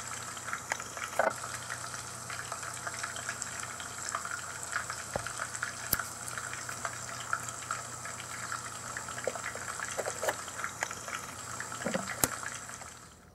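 Small plastic pieces tap and click softly against a hard plastic board.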